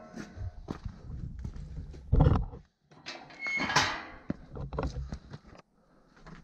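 A metal gate clanks and rattles as it swings.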